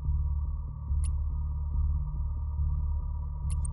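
A short electronic beep sounds from a game menu.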